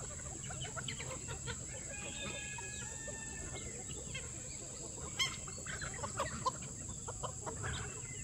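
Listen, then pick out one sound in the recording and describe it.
A flock of chickens clucks and chirps nearby.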